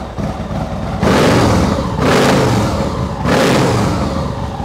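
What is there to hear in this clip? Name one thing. A motorcycle engine revs sharply several times.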